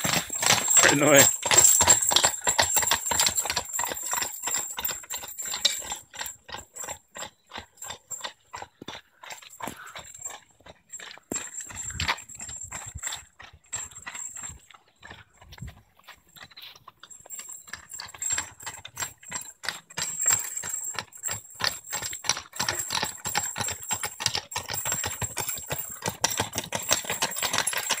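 Carriage wheels crunch over gravel.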